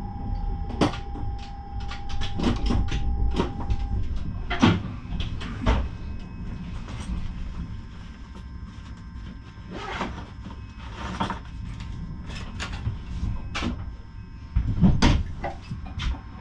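A train rumbles low and steady on its rails.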